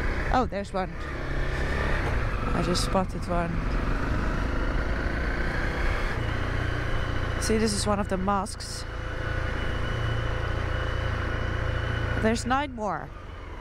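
A motorcycle engine rumbles steadily.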